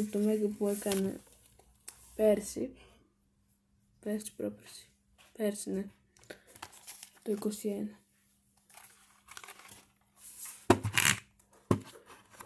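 A book's cover rustles as it is handled.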